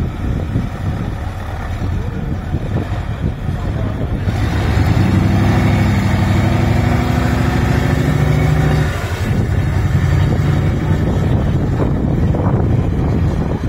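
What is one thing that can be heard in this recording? Wind buffets outdoors.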